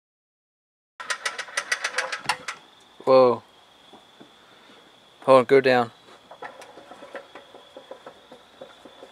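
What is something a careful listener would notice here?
Metal parts clink and knock close by.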